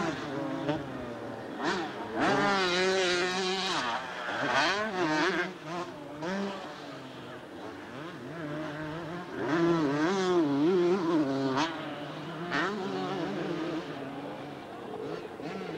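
A motorbike engine revs up and down, loud and whining.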